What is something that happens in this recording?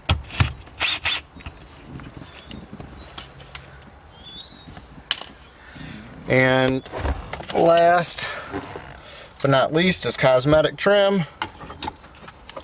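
Plastic parts knock and click as they are handled.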